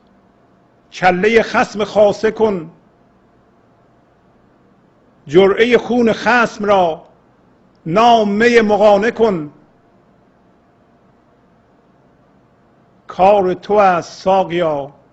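A middle-aged man speaks calmly into a microphone, in short phrases with pauses.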